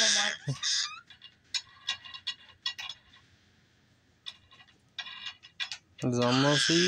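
Wooden beads clack on a toy's wire tracks.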